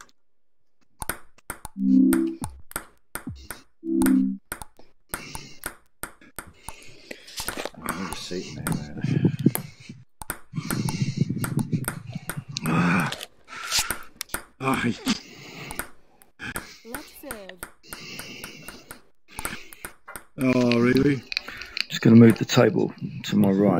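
A ping pong ball clicks sharply back and forth off paddles and a table.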